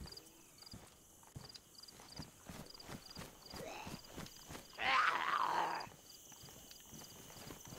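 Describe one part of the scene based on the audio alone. Footsteps swish quickly through grass.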